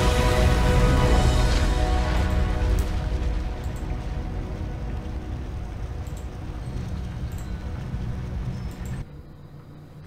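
Triumphant game music plays loudly and fades out.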